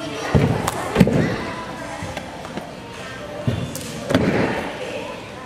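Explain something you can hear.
A gymnast lands with a heavy thud on a soft mat.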